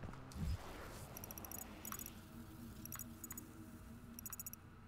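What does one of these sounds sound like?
Menu clicks and beeps sound in quick succession.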